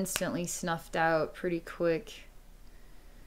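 A woman speaks softly and calmly, close to the microphone.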